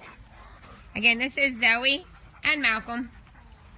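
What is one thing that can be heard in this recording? A dog whines and yelps nearby.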